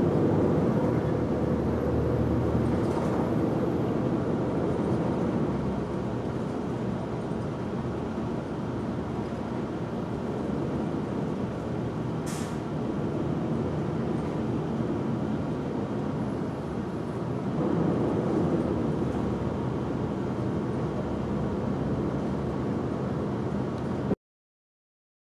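A vehicle's engine rumbles steadily from inside while it drives along.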